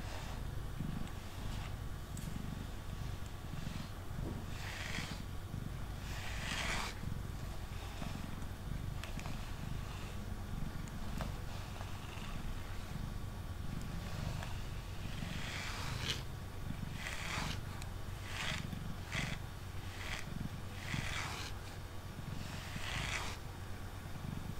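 A brush rasps through a cat's fur in short strokes.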